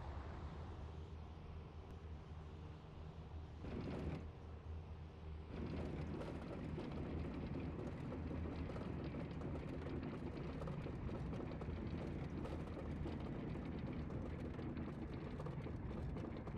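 A propeller plane's engine rumbles steadily as it taxis across grass.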